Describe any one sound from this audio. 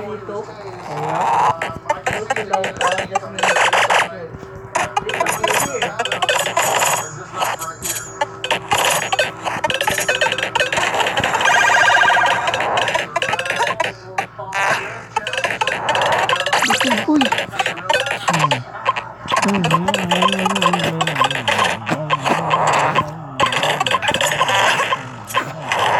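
Upbeat electronic game music plays.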